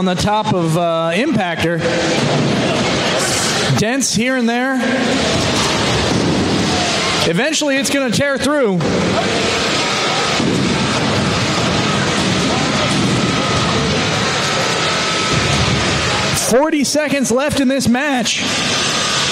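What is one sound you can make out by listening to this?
A robot's spinning weapon whines in short bursts, rising and falling in pitch.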